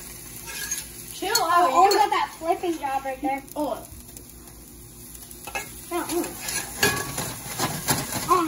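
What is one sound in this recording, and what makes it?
Mushrooms sizzle softly in a hot pan.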